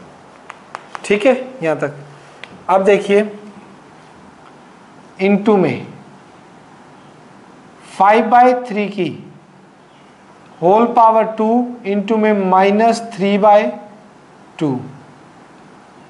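A man speaks calmly in short phrases through a close microphone.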